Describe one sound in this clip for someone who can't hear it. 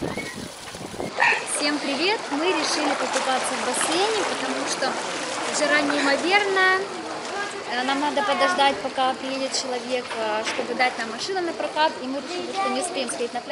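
A young woman talks cheerfully, close by.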